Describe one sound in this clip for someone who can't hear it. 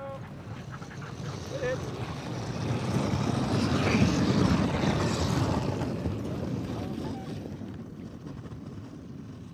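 A dog sled rushes past close by, its runners hissing over snow.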